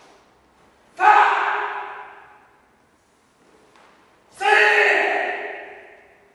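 A man lets out sharp, loud shouts that echo around a large hall.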